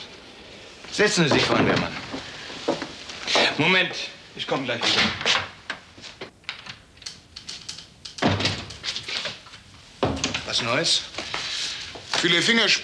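An elderly man speaks firmly, close by.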